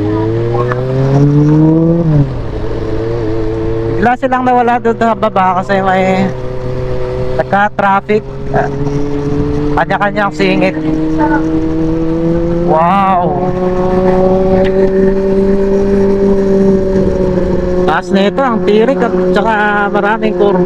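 A motorcycle engine hums steadily, rising in pitch and dropping as it shifts gear.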